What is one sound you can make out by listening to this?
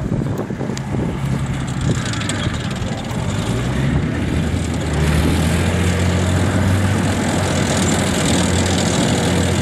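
An armoured vehicle's engine rumbles as it drives closer, growing louder.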